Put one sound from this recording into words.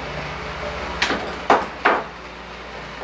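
A wooden shelf knocks and rattles as it is pushed.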